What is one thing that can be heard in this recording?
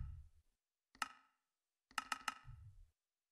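A game interface gives short clicks.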